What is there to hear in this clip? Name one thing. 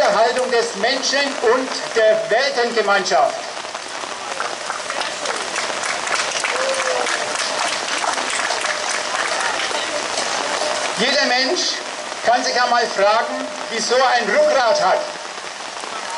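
A man speaks loudly into a microphone outdoors, in bursts.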